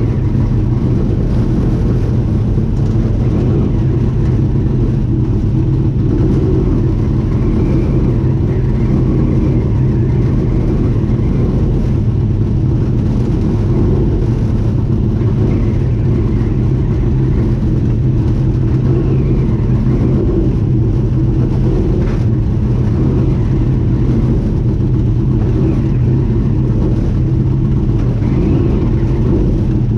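A boat engine rumbles steadily nearby.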